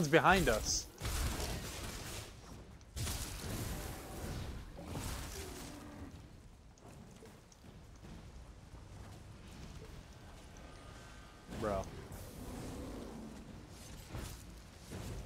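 Spell blasts and weapon hits crackle and thud in bursts.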